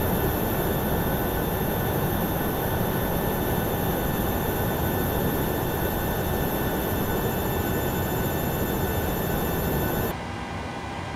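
A parked jet airliner whines and hums steadily up close.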